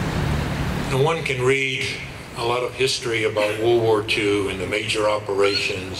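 A second man speaks calmly into a microphone over loudspeakers outdoors.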